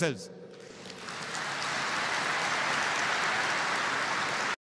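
A large crowd applauds in a big echoing hall.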